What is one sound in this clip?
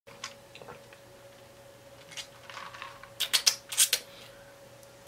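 A young man gulps and slurps a drink close by.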